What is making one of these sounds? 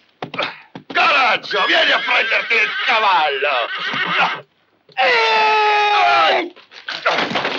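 A man shouts angrily nearby.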